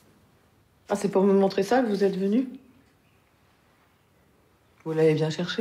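A woman speaks calmly and evenly nearby.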